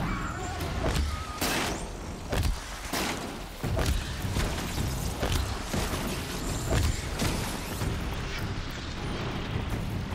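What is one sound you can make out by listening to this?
Ice blasts crackle and burst against a machine.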